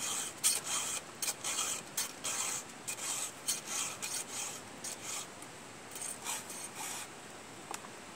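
A file rasps in short, quick strokes against a chainsaw chain.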